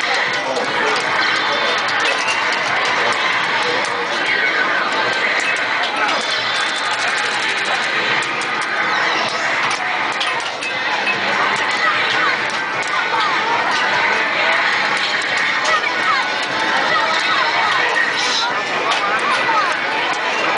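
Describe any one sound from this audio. Fighting game sound effects of punches, blasts and energy bursts play loudly throughout, heard over a television speaker.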